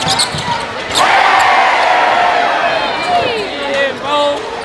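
A crowd erupts in loud cheers and screams.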